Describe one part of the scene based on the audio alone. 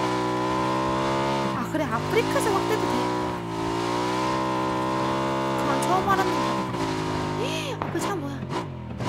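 A motorbike engine hums steadily and revs.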